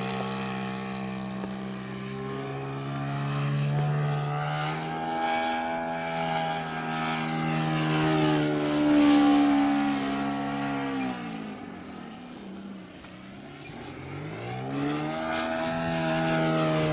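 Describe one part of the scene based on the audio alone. A model plane's engine whines overhead, rising and falling in pitch.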